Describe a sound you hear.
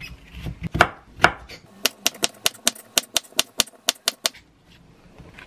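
A knife chops through a cucumber onto a cutting board with quick taps.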